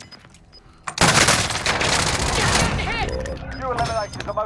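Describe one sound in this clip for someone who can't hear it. Gunshots ring out in rapid bursts, close by.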